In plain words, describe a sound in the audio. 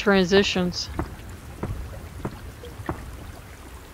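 Water drips onto a hard floor in a dark, echoing space.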